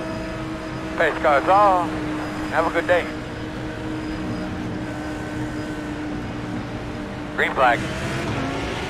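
Tyres squeal sharply on the track.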